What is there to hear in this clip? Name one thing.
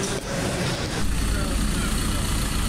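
A van's engine idles with a low rumble.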